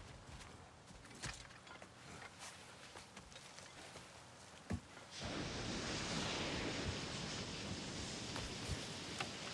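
A climber's hands scrape and grip rock.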